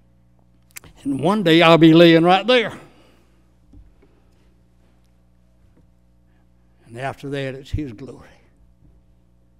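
An elderly man speaks slowly into a microphone in an echoing hall.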